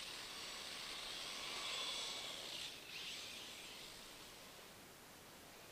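Small tyres hiss and crunch over packed snow.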